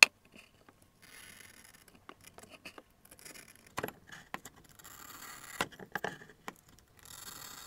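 A glass cutter scratches across a glass with a thin, gritty hiss.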